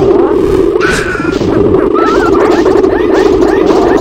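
Creatures squeal and shriek as they are hit.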